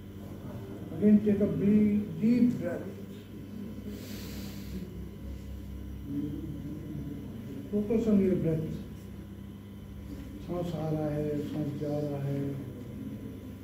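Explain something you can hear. A man speaks with animation to a room, close by.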